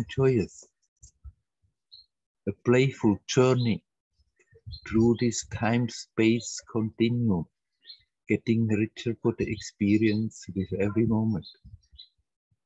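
An elderly man speaks calmly and closely over an online call.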